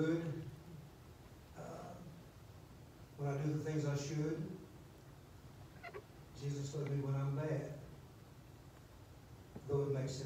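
A middle-aged man speaks calmly into a microphone, with pauses, in a room with some echo.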